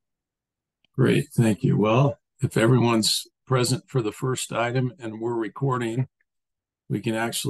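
A middle-aged man speaks steadily over an online call.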